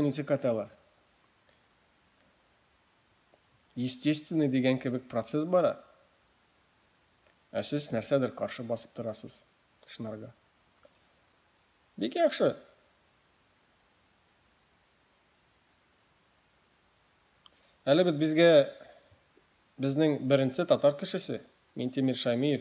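A young man speaks calmly close to the microphone, with long pauses.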